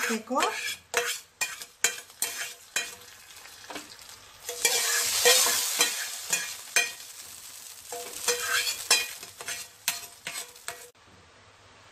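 A metal spoon scrapes and taps against a pan.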